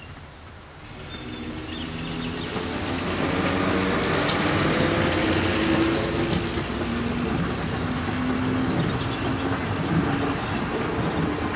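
A diesel locomotive rumbles past nearby with its engine droning.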